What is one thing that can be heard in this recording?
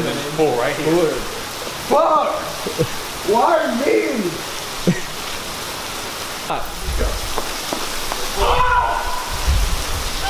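A young man shouts and whoops with excitement nearby.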